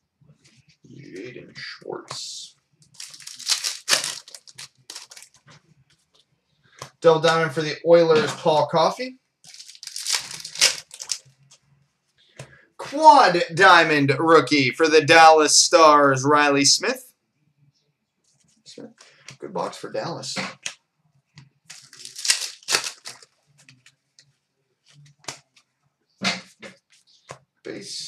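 Trading cards rustle and flick as they are shuffled.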